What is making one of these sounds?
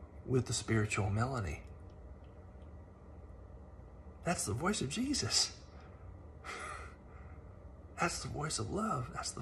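A man speaks with animation close to the microphone, pausing between phrases.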